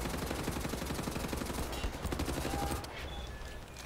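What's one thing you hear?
Machine guns fire in rapid, loud bursts.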